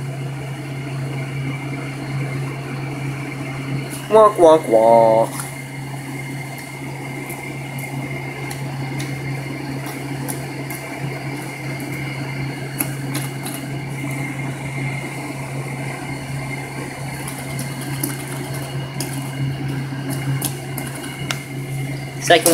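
Fidget spinners whir and hum steadily on a hard floor.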